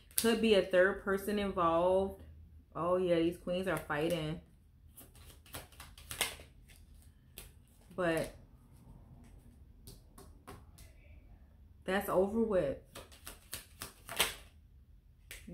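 Cards shuffle and snap between hands.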